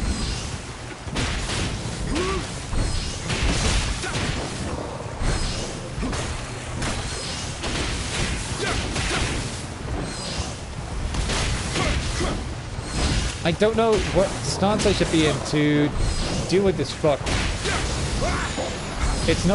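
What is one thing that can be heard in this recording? Magic blasts burst with loud whooshes.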